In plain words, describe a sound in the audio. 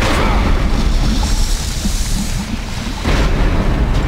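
A shimmering magical beam hisses softly.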